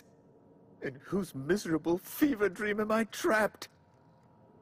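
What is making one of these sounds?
A man speaks with dismay, close to the microphone.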